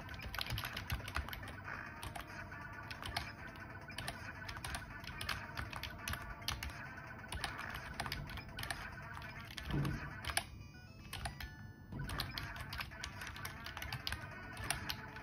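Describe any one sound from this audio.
Keyboard keys click rapidly under fingers.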